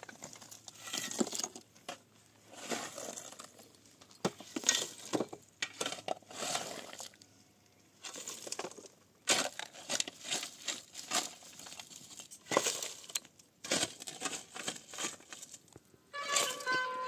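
Stones clatter into a metal wheelbarrow.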